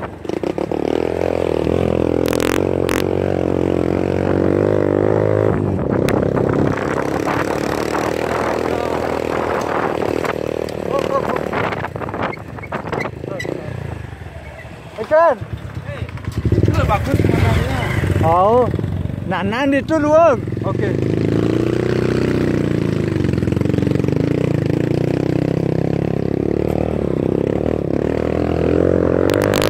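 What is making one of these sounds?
A small motorcycle engine runs as the bike climbs a dirt track.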